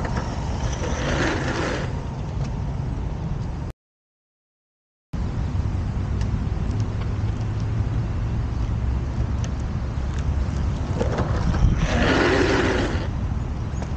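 Skateboard wheels scrape and hiss as a rider slides to a stop.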